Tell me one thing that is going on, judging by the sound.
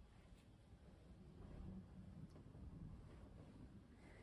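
A palette knife scrapes softly across wet paint.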